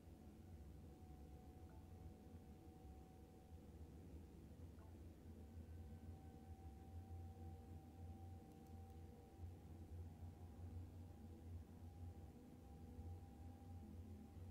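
An electric train's motor hums with a steady whine.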